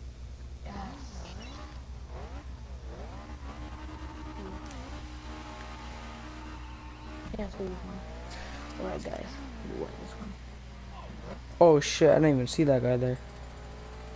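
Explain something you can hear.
A car engine revs up and down as it accelerates.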